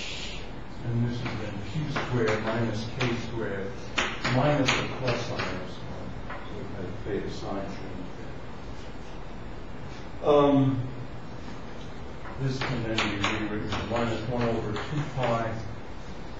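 An elderly man speaks calmly, as if lecturing.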